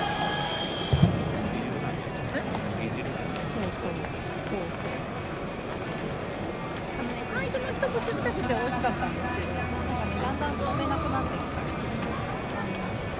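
Young men chat casually nearby.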